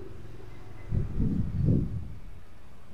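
A small drive is set down with a dull thud.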